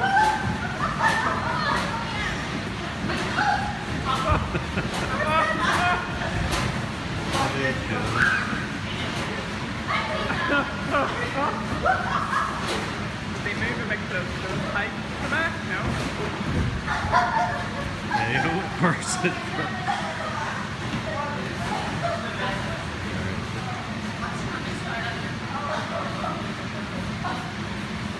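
Children shout and squeal excitedly in a large echoing hall.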